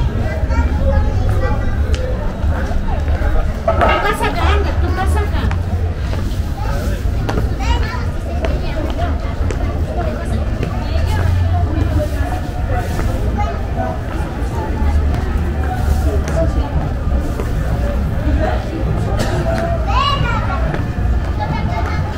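Men and women chat in the distance outdoors.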